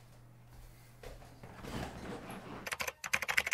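A chair creaks and rustles as a man sits down.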